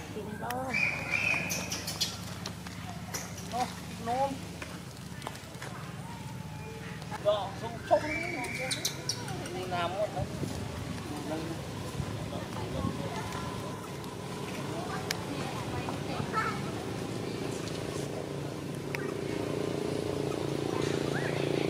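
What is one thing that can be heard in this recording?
Leaves rustle as monkeys move through branches.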